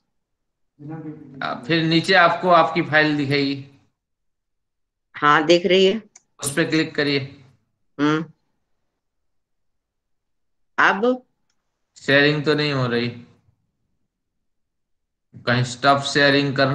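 An elderly woman speaks calmly over an online call, in short phrases with pauses.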